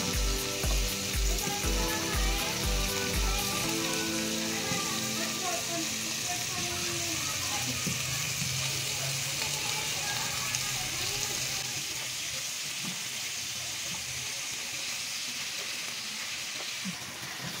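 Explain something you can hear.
Vegetables drop into a pan with soft thuds.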